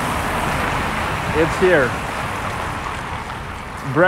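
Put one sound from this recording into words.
A car drives past on a nearby street.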